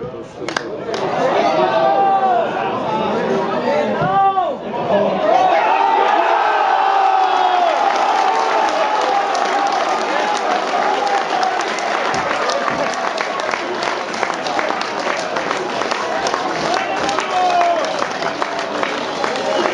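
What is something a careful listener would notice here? A large crowd of fans cheers and shouts loudly outdoors.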